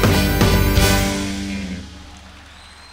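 A trumpet plays loudly up close and fades.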